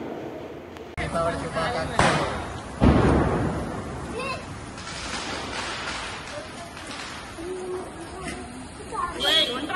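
Sparklers fizz and crackle close by.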